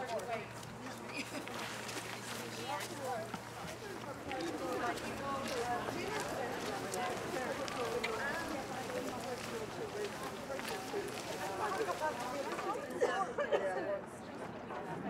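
A group of women chat and call out to each other outdoors.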